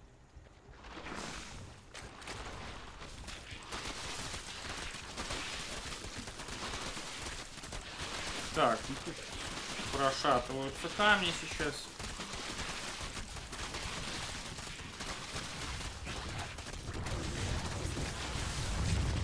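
Game weapons fire and explosions crackle in a battle.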